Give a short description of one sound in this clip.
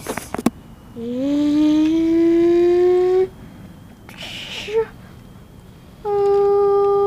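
A toy car plays loud electronic tones.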